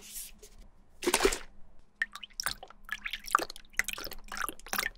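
Water pours and splashes into a container.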